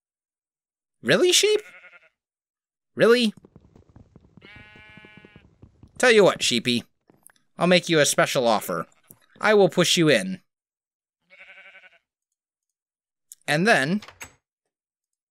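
A sheep bleats loudly, over and over.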